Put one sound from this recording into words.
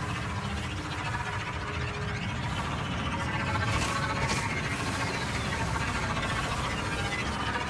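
A motorbike engine rumbles steadily.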